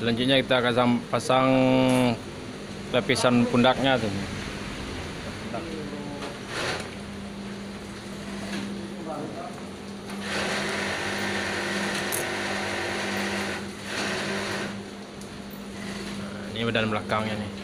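A sewing machine runs, stitching fabric.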